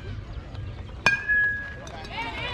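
A metal bat pings sharply as it hits a ball.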